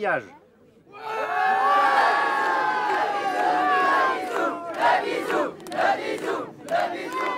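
A crowd of people cheers loudly and joyfully.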